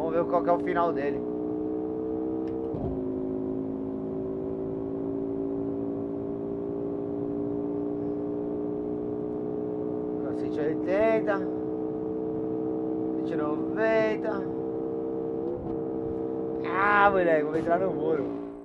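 A car engine drones steadily at high speed, dropping in pitch once as it shifts gear.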